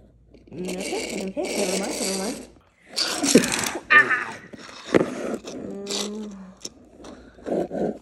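A small toy car rolls across a wooden floor.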